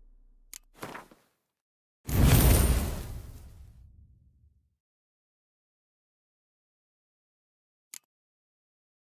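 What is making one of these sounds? Game menu clicks and chimes sound.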